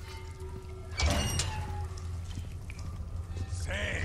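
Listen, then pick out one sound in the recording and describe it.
A metal gate creaks and clanks open.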